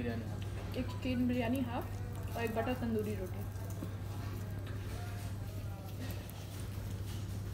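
Fingers tear a piece of naan bread.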